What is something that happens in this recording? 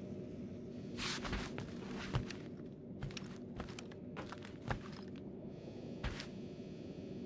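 Footsteps tap on a hard metal floor.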